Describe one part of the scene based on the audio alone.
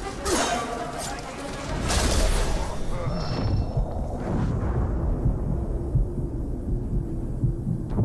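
Flames crackle and roar.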